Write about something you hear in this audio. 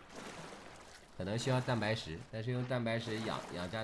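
Water splashes and laps against a small raft.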